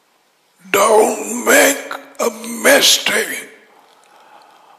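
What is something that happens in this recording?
A man speaks emphatically into a close headset microphone.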